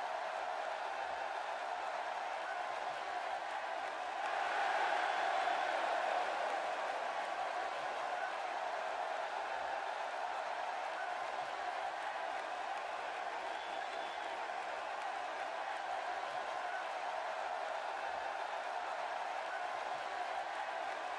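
A large crowd cheers and roars steadily in a big arena, swelling loudly for a few seconds.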